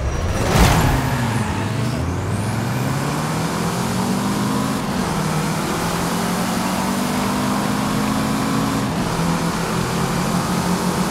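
A car engine revs up and roars as it accelerates.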